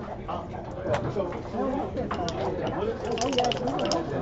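Game pieces click against a wooden board.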